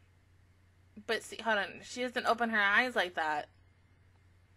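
A young woman speaks briefly and brightly into a close microphone.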